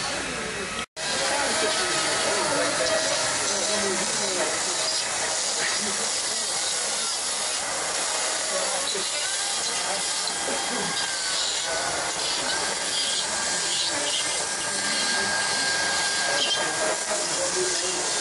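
A chainsaw roars steadily as it carves wood.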